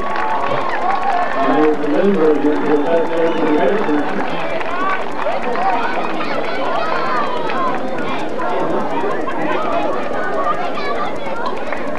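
A crowd of spectators talks and cheers outdoors.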